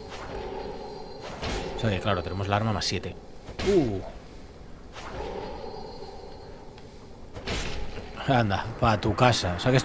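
Metal weapons swing and strike in a close fight.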